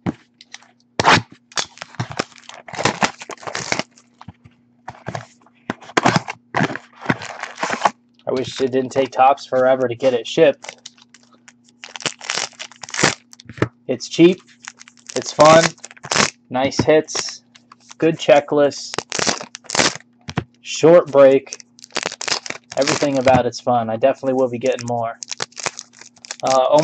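Foil card wrappers crinkle and tear as packs are ripped open.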